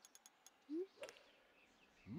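A golf club strikes a ball with a sharp whack.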